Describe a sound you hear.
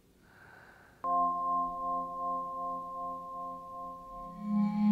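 A vibraphone rings out with a sustained bowed chord.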